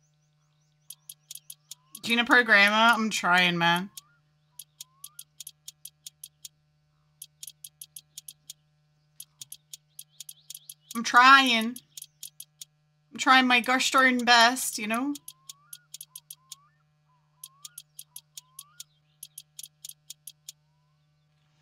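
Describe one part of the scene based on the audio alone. A wrench ratchets in quick, short clicking bursts.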